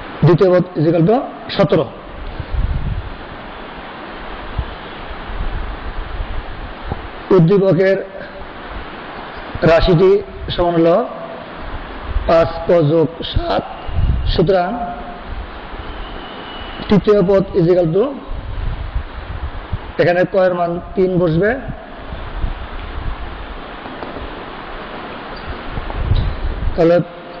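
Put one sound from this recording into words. A middle-aged man speaks calmly through a clip-on microphone, in short bursts with pauses.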